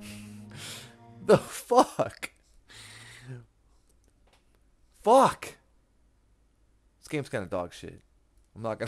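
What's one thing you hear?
A man talks with animation into a close microphone, in bursts.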